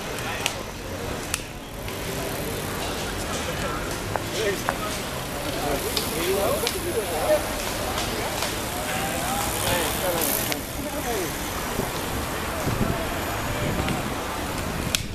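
Bicycle tyres hum and rattle over cobblestones as cyclists ride past.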